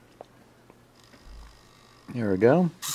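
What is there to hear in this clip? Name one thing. A small servo motor whirs briefly.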